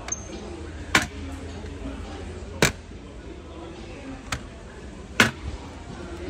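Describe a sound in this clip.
A plastic toilet lid bangs shut several times.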